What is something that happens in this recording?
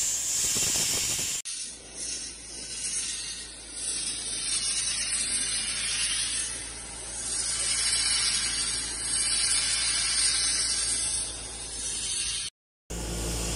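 A sandblasting nozzle hisses loudly and steadily outdoors.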